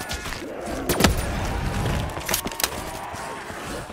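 A gun fires in bursts of sharp shots.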